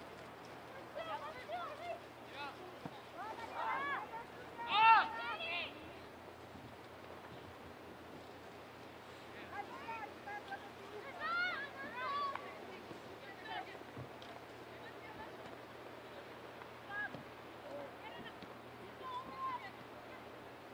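Young women shout to each other from across an open field, outdoors.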